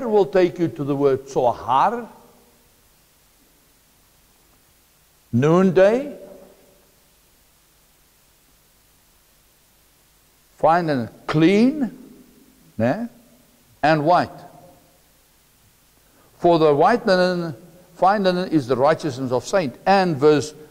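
A middle-aged man speaks calmly through a clip-on microphone, in bursts with long pauses.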